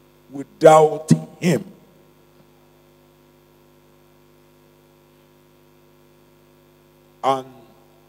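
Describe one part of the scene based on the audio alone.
A man speaks with feeling into a microphone, heard through loudspeakers in a large hall.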